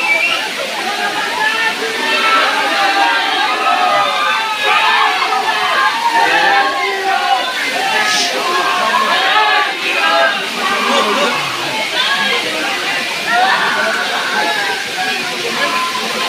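Water splashes down a rocky waterfall.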